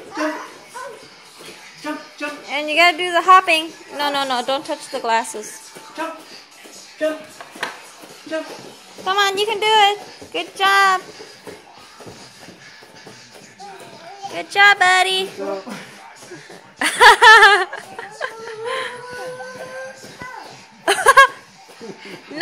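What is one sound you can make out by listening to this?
Bare feet thump on a soft floor mat as a man hops.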